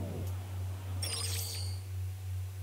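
A short electronic chime sounds as a menu opens.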